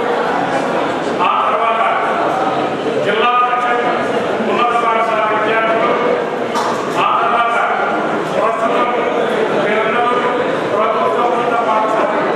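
An elderly man speaks forcefully into a microphone, heard through loudspeakers outdoors.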